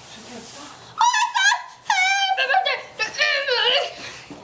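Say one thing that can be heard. A young girl squeals in a high voice close by.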